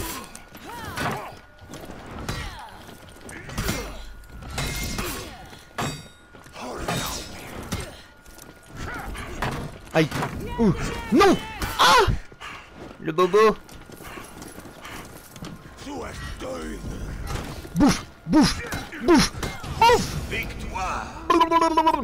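Swords clash and clang with metallic rings.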